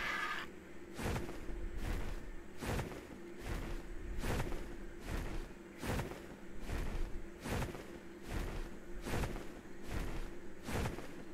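Large wings flap with regular heavy whooshes.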